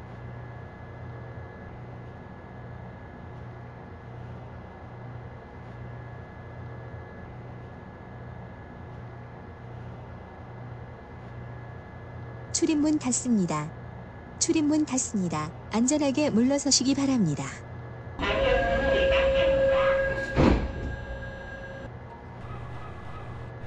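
Train ventilation hums steadily.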